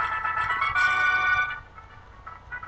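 A bright video game victory tune plays loudly, then stops.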